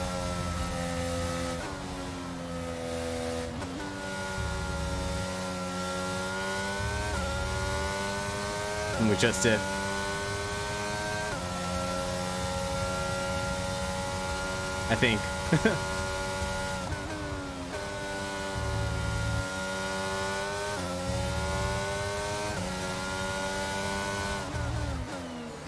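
A racing car engine whines loudly, rising in pitch and dropping with each gear change.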